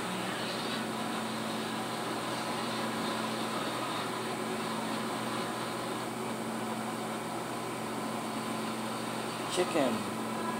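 Video game music plays quietly through a television's speakers.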